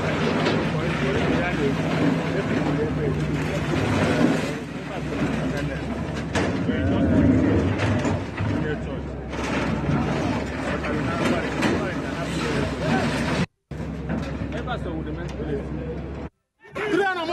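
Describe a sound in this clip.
Walls crash and crumble as an excavator tears them down.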